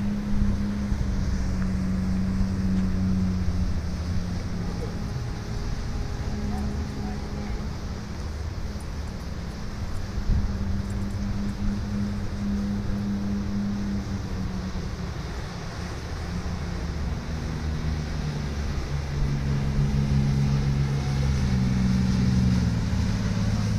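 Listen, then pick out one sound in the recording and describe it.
Waves crash and churn against rocks.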